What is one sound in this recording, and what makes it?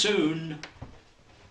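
A man speaks a few words up close.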